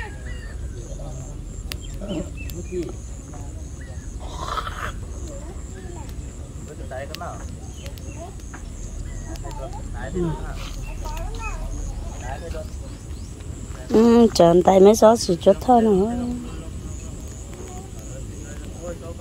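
A fire crackles and pops outdoors.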